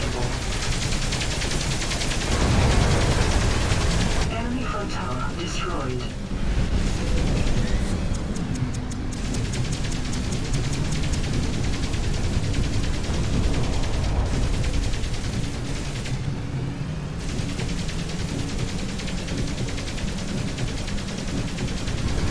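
An armed buggy's engine drones in a video game.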